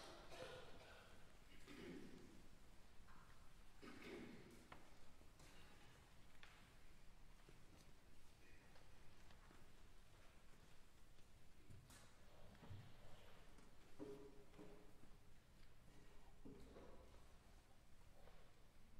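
A piano plays softly in a large echoing hall.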